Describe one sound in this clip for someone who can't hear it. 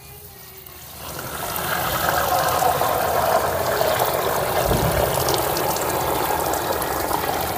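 Water pours and splashes steadily onto lentils in a metal pan.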